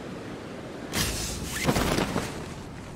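A parachute snaps open with a loud flapping burst.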